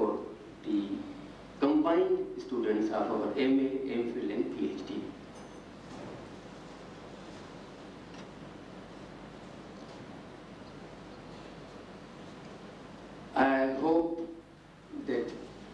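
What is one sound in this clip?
A man speaks into a microphone in a calm voice, with pauses.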